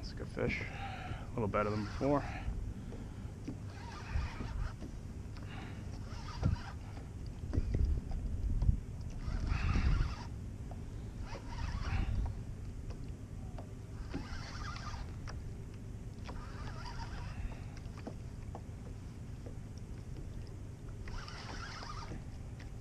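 Wind buffets and rumbles across open water.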